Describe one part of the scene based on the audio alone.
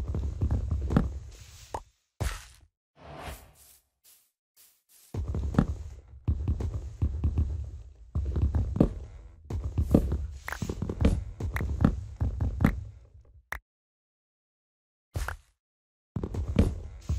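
An axe knocks repeatedly against wood.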